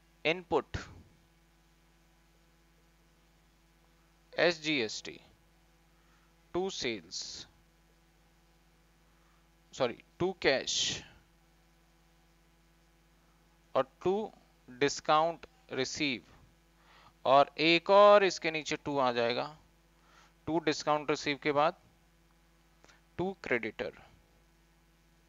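A young man speaks calmly into a close microphone, in short phrases with pauses.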